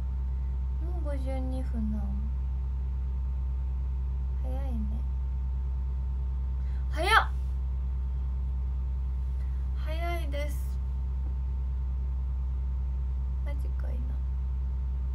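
A young woman speaks softly in short bursts, close to a microphone.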